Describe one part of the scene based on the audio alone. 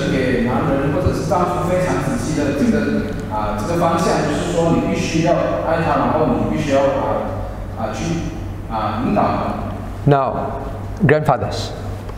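A middle-aged man speaks calmly into a microphone in a room with a slight echo.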